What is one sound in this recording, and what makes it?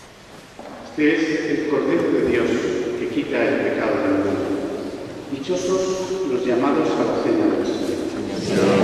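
A man chants loudly in a large echoing hall.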